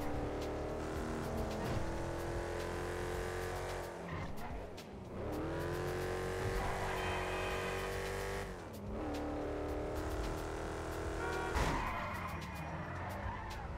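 A V8 hot rod engine roars, accelerating through the gears.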